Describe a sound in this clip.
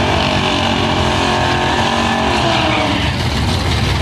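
Tyres screech as they spin on the pavement.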